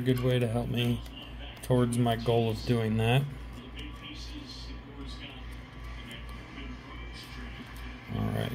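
Trading cards slide and tap against each other close by.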